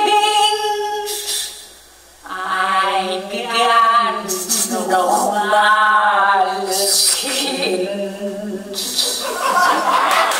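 A woman sings close by.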